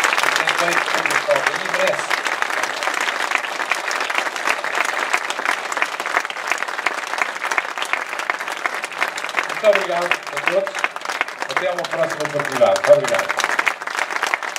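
An elderly man speaks through a microphone over a loudspeaker.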